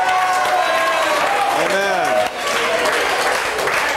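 A crowd claps hands.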